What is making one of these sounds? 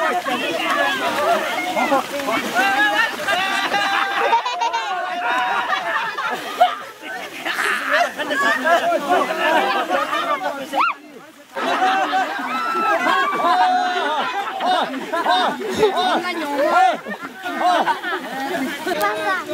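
A crowd of young men and women shout and cheer excitedly outdoors.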